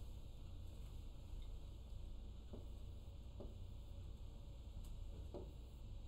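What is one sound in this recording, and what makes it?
A marker squeaks faintly on a glass board.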